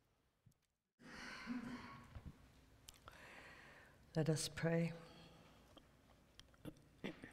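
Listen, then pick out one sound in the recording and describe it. An older woman speaks calmly through a microphone.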